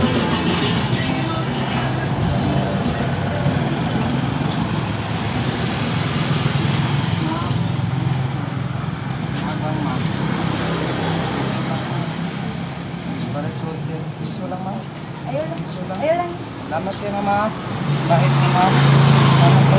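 Motorcycles ride by.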